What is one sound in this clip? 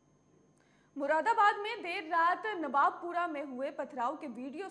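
A woman speaks clearly and steadily into a microphone, like a news reader.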